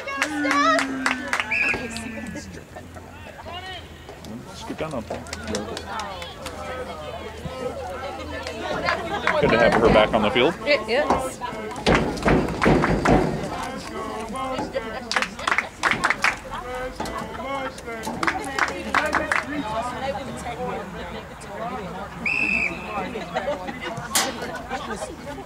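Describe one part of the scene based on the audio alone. Young women players shout to each other across a field.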